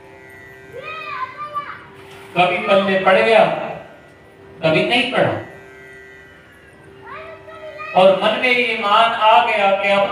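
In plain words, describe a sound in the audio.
A young man sings into a microphone with feeling.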